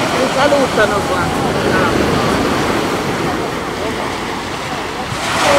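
Waves break and wash steadily onto a pebbly shore.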